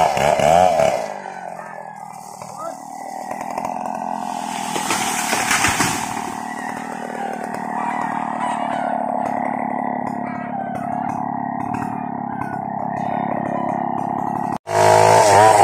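A chainsaw engine idles steadily.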